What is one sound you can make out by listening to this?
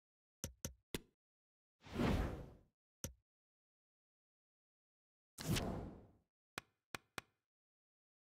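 Menu selections click sharply.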